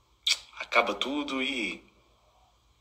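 A young man speaks calmly and close to a phone microphone.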